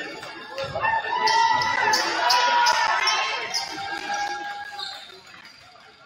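A crowd cheers and calls out in a large echoing gym.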